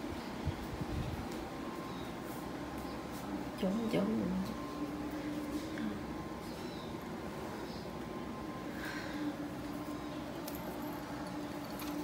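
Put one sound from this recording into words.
A cat's claws scratch and patter on a cat tree.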